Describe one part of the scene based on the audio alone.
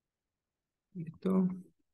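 A young man speaks calmly into a microphone, heard close.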